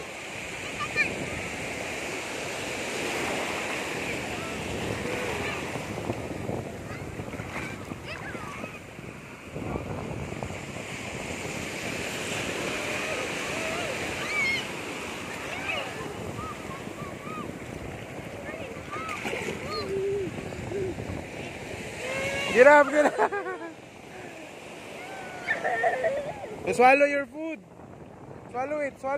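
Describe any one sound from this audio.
Shallow waves wash and fizz over sand.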